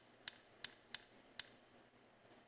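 A combination lock's dial clicks several times.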